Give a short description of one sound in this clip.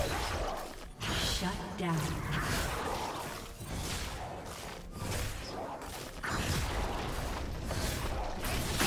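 Magic spells whoosh and crackle as characters fight in a video game.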